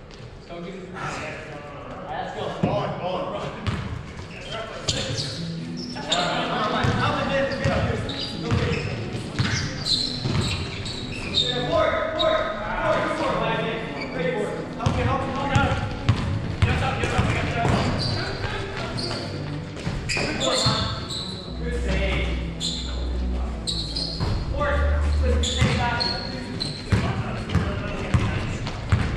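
Young men shout and call to each other across an echoing gym.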